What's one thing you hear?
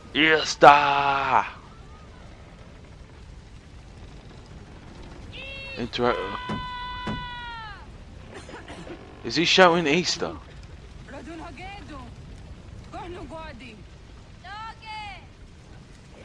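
A young woman shouts urgently nearby.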